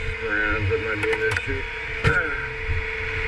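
A metal toolbox lid clanks open.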